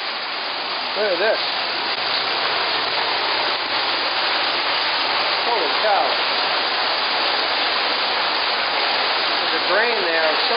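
A small waterfall splashes and echoes in an enclosed space.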